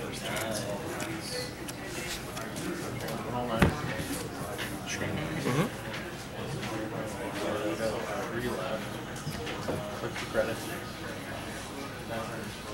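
Cards are shuffled and riffled with soft clicks.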